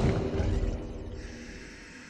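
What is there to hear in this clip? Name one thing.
A beast snarls with a deep growl.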